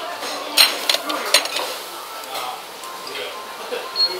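Dishes clink and clatter close by.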